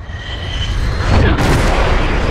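A jet plane roars past very close with a rushing whoosh.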